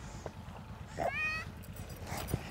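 A young child cries out briefly nearby.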